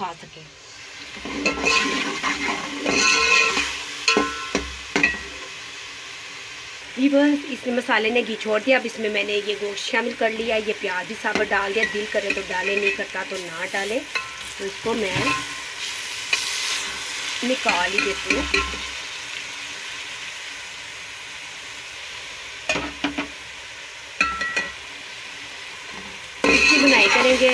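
Food sizzles gently in a pot.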